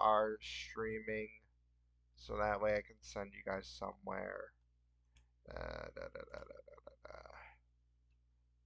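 A man talks casually through a headset microphone.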